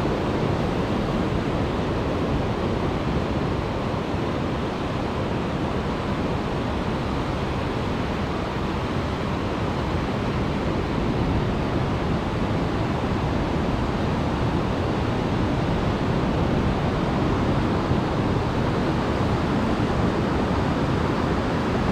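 Waves wash onto a beach nearby in a steady roar.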